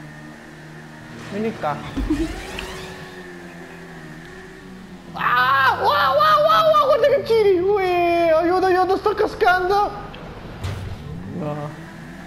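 A motorcycle engine hums and revs.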